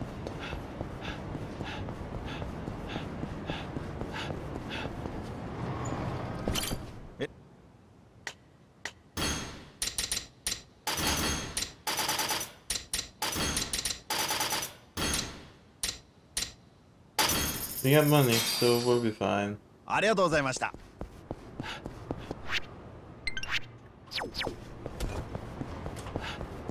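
Running footsteps slap quickly on pavement.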